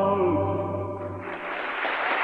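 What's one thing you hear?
A cast of singers holds a final note together on stage.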